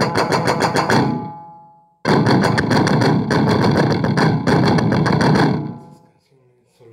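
An electric guitar plays loud, distorted strummed chords.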